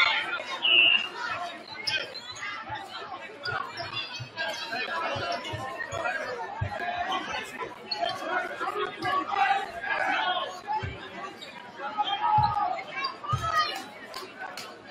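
Basketball shoes squeak on a wooden court.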